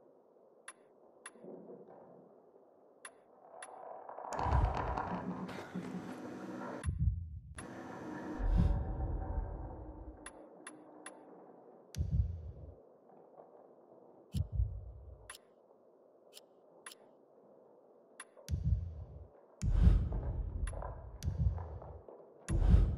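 Short, soft menu clicks sound again and again.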